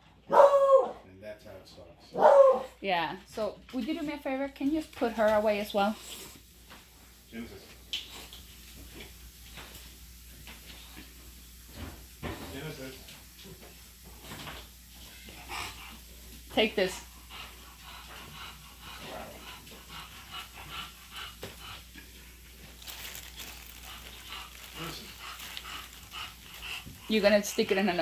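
A dog whines and howls in short bursts nearby.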